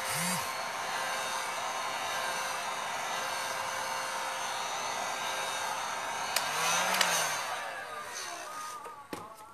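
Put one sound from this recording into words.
A heat gun blows air with a steady whooshing roar.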